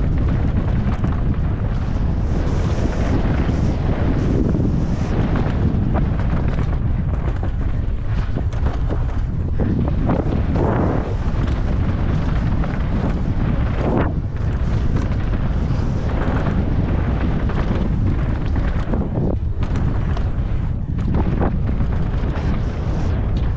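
Bicycle tyres crunch and skid over loose gravel and dirt.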